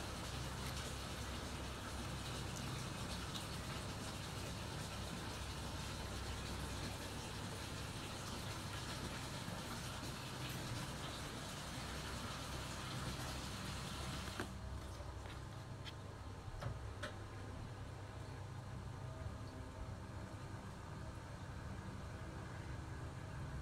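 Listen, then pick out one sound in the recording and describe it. Stiff paper cards rustle and tap as they are handled.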